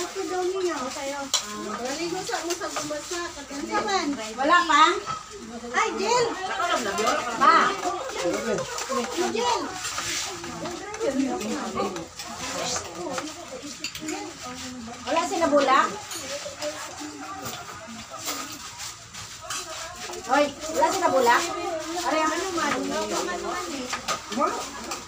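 Several women and men talk and chatter close by.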